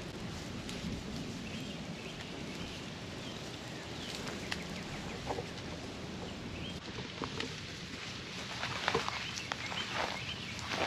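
Wind rustles the grass and leaves outdoors.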